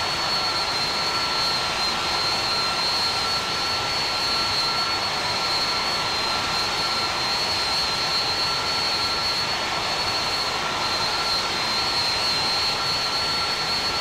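Jet engines roar steadily with a high whine.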